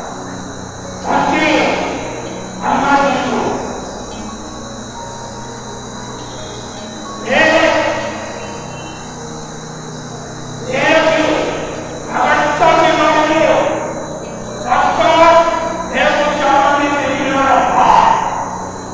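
An elderly man speaks slowly into a microphone, in bursts with long pauses, heard through loudspeakers.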